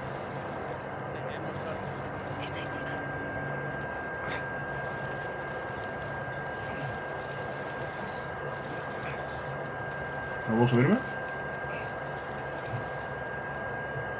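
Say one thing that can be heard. Water sloshes softly as someone wades through it.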